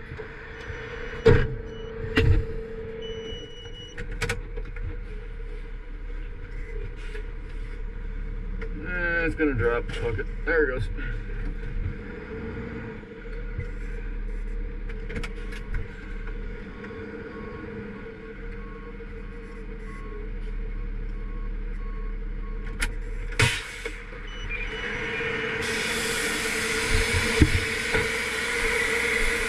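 A truck engine rumbles steadily close by.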